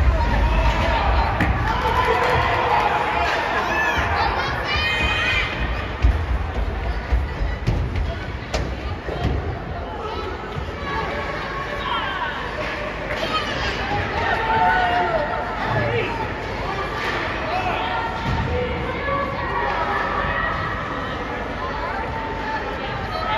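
A crowd of spectators murmurs and chatters in a large echoing arena.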